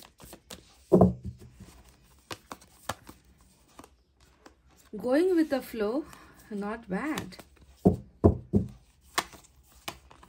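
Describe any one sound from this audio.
A card is laid down on a cloth surface with a soft tap.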